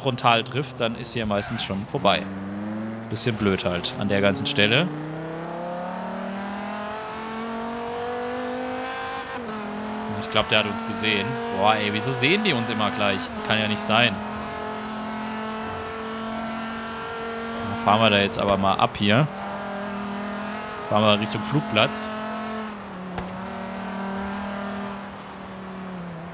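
A car engine roars at high revs, rising in pitch as it speeds up through the gears.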